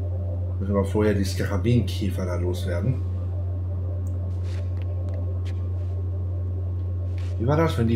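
Footsteps run lightly across a stone floor.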